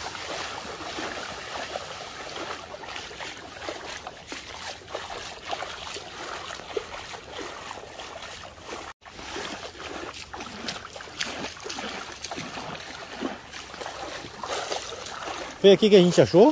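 Water trickles and splashes along a shallow stream.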